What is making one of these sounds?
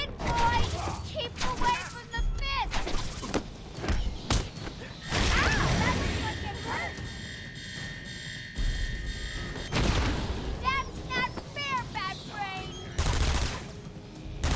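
Punches and blows thud in a fast fight.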